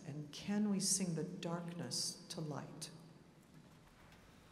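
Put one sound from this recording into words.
A large choir sings in a vast echoing hall, then the final chord rings out and fades.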